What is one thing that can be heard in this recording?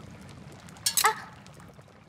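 Chopsticks clink against a metal pot.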